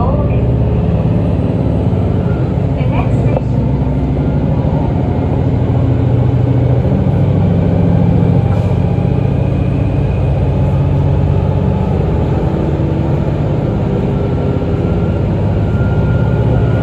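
A subway train rumbles and roars loudly.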